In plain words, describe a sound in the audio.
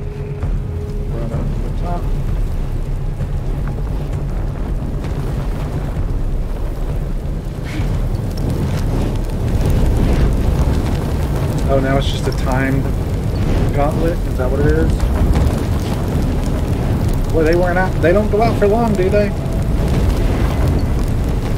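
Fire roars steadily with a low rumble.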